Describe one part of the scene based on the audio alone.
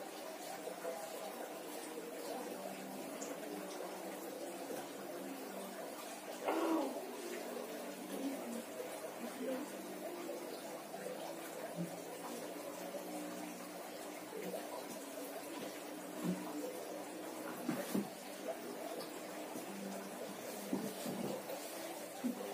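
Hands rub and scrape across bare skin on a back.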